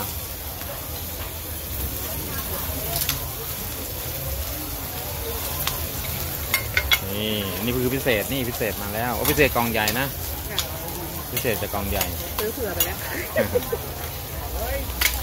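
A metal spatula scrapes and taps against the griddle.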